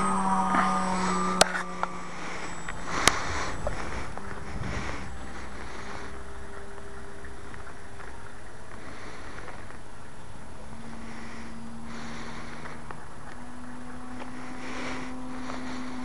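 A model airplane engine buzzes high overhead, rising and falling in pitch.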